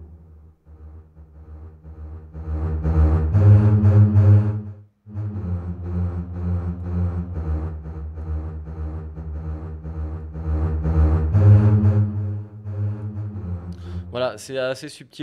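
Orchestral strings play slow, swelling held chords.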